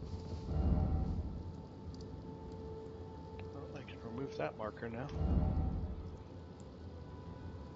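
A menu clicks softly several times.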